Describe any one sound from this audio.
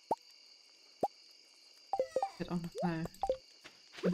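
Short soft clicks sound as a game menu is browsed.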